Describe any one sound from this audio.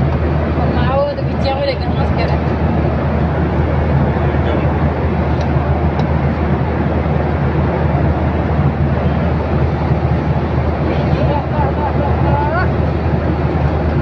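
A steady low roar of jet engines fills the air.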